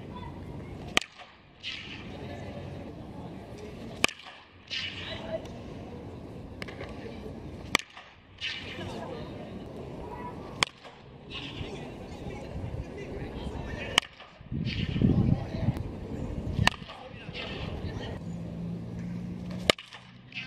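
A bat cracks sharply against a ball, again and again.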